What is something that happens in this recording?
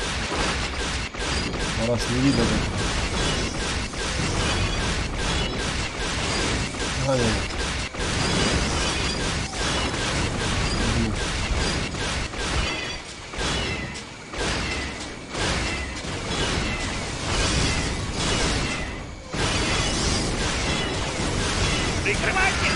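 Blaster shots zap and crackle rapidly.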